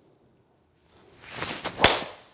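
A golf club swishes through the air.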